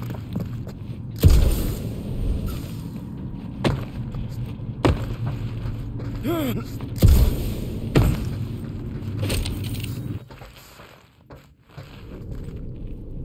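Heavy footsteps thud on a hard, metallic floor.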